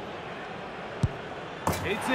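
A football is struck with a sharp thud.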